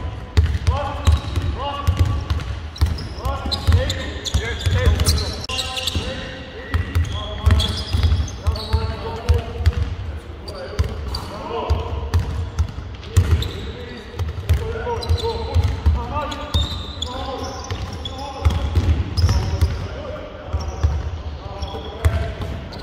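Basketballs bounce on a hard court in a large echoing hall.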